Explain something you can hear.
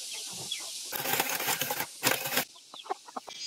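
A hand grater rasps quickly through a root vegetable.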